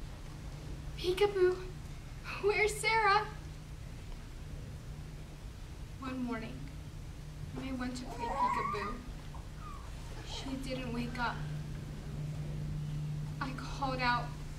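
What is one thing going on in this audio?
A young girl sings softly and emotionally close by.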